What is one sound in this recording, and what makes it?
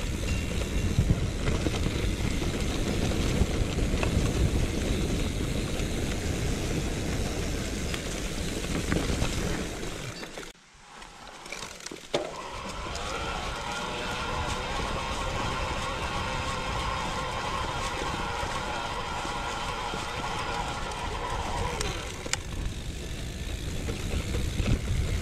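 Wind buffets loudly outdoors as a bicycle rides along.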